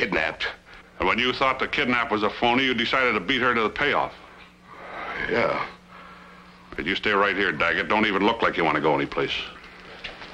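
A man speaks earnestly nearby.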